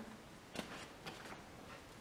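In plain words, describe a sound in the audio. Leaves rustle softly as a hand brushes them.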